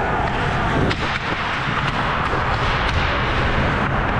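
A hockey stick taps a puck on the ice.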